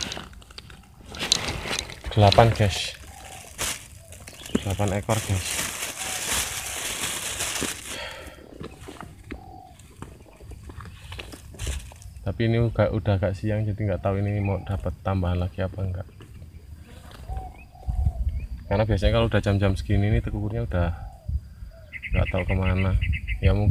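A man talks calmly, close by, outdoors.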